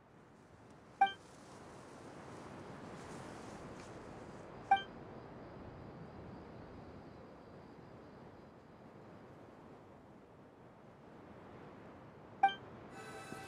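A soft chime sounds with each page turn of a game menu.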